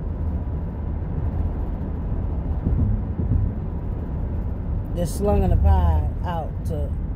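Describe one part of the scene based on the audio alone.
A car's engine rumbles low and steady inside the car.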